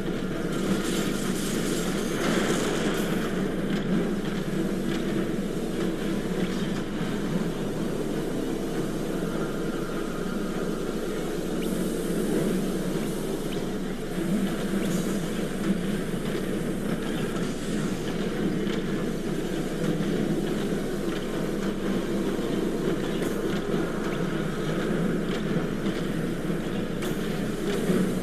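Laser weapons fire rapidly in a battle.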